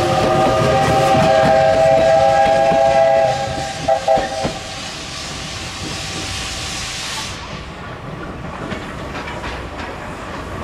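A steam locomotive chugs and its wheels clatter along the rails.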